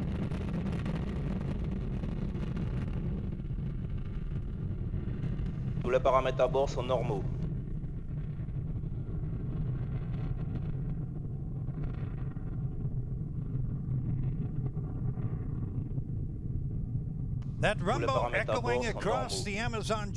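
A rocket engine roars with a deep, steady rumble.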